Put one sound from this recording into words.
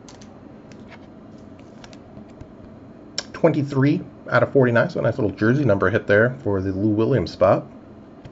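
Trading cards rustle softly as hands handle them.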